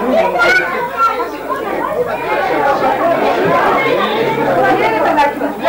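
Several adults chatter over one another nearby.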